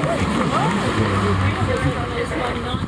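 A pickup truck's engine hums as the truck drives past close by.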